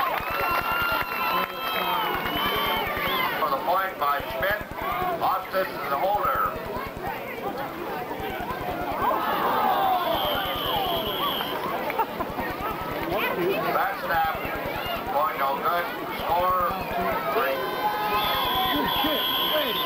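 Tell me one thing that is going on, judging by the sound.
Young men shout outdoors during a football play.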